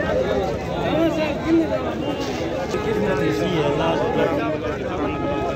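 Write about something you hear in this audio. A crowd of men talks and shouts loudly outdoors, close by.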